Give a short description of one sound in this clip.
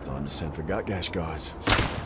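A flare pistol fires with a sharp bang.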